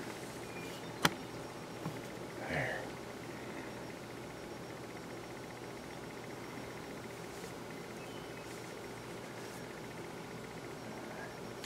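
A deer rustles leaves as it tugs at a bush.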